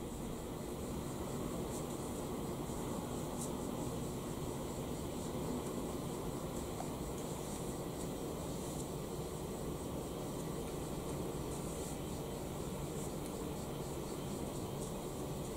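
A brush softly swishes across paper.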